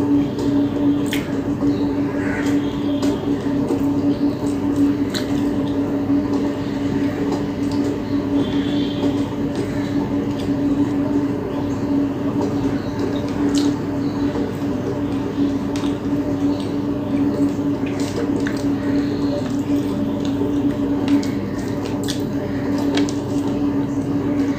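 A woman chews food close to a microphone.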